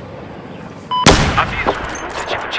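A rifle fires a single loud, sharp shot that echoes briefly.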